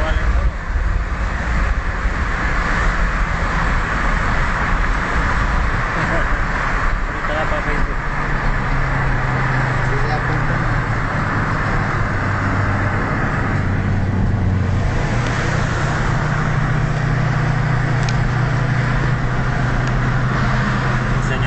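Road and wind noise rush past the car window.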